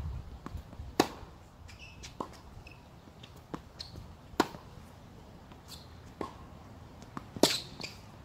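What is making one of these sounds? Tennis rackets strike a ball back and forth outdoors.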